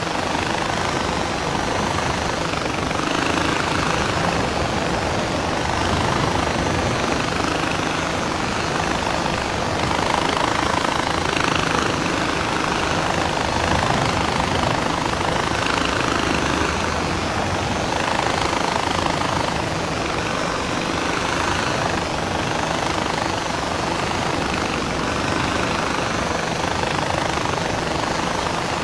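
Wind rushes past steadily.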